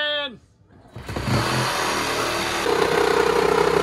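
A reciprocating saw buzzes loudly.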